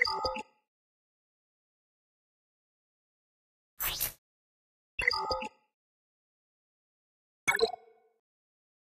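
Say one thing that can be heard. Game menu sounds chime and click.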